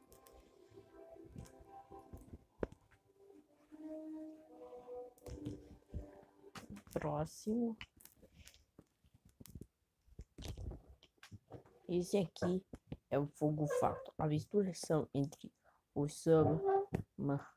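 Plastic toy figures clack and rattle as hands handle them.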